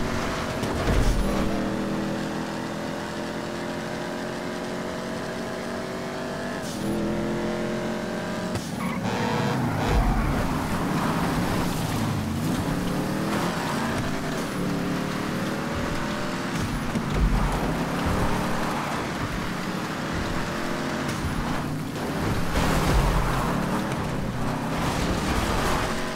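A car engine roars steadily, its pitch rising and dropping with gear shifts.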